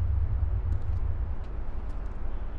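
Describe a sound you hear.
A vehicle door is pulled open.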